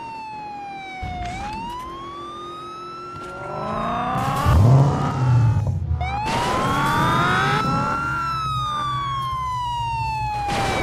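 A car engine roars and revs as the car speeds up.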